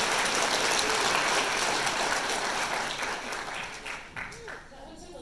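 An audience applauds loudly in a large hall, then fades out.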